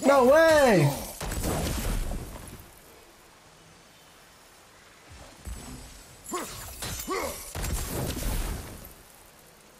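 A fiery explosion roars and crackles.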